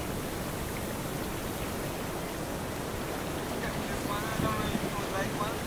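A paddle dips and splashes in the water.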